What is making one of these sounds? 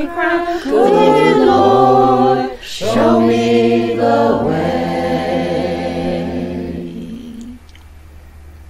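A group of men and women sing together through an online call.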